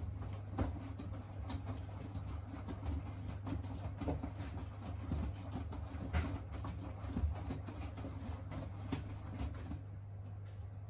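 Laundry tumbles and thumps inside a washing machine drum.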